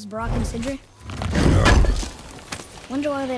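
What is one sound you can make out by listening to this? A heavy wooden chest lid creaks open and thuds.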